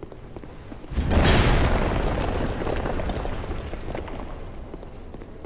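A loud magical blast roars and slowly fades.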